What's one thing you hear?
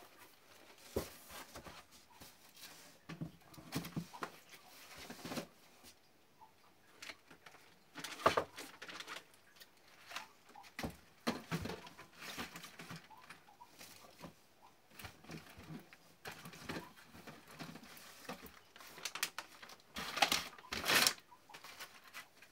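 Cardboard boxes and packets rustle and knock.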